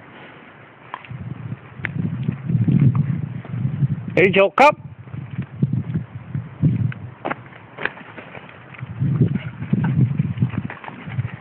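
A dog digs and scratches at leafy ground close by.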